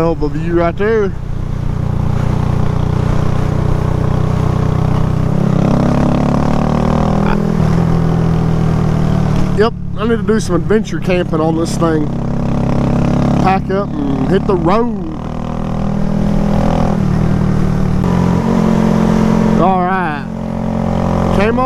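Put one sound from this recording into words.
A motorcycle engine hums steadily and revs up and down as it rides.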